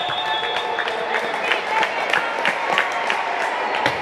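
A volleyball is struck with a hand.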